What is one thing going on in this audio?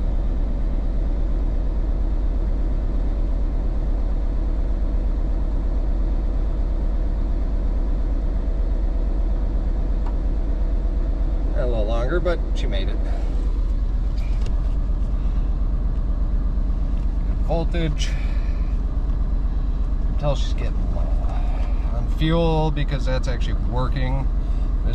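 An engine idles with a steady, low rumble close by.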